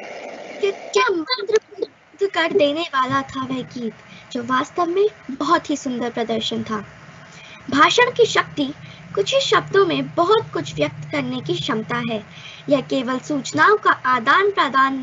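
A young girl speaks steadily into a headset microphone, heard through an online call.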